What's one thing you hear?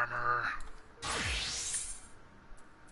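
A shimmering magical whoosh sweeps upward.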